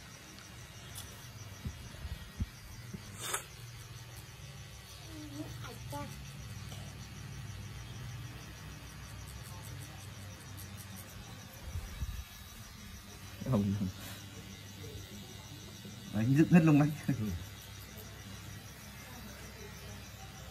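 A tattoo machine buzzes steadily close by.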